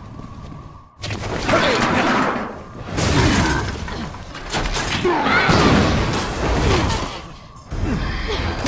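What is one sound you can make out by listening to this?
Loud crashes and thuds ring out.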